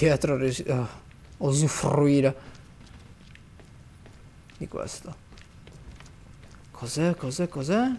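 Footsteps scuff slowly across a hard floor.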